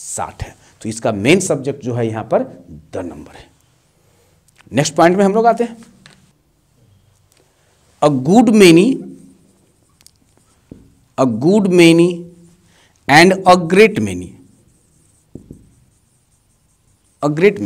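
A man speaks clearly and with animation, close by, with pauses between phrases.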